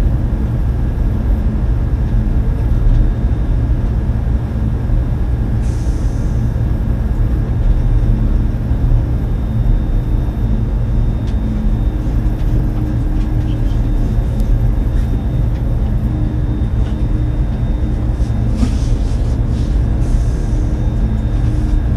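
Train wheels clack over rail joints.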